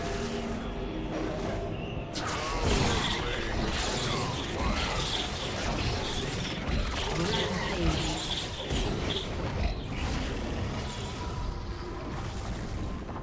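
Magical spell effects whoosh and crackle in a fight.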